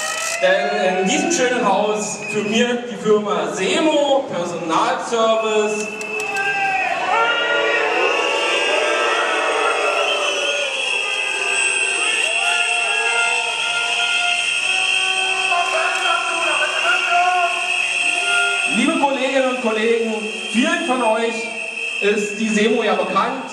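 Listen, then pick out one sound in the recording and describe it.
A crowd of adult men and women chatters and calls out outdoors.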